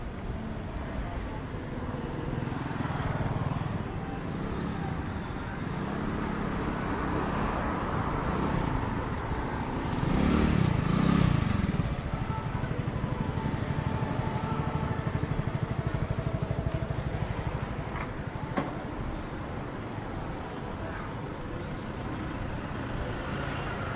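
A motorbike engine hums steadily close by.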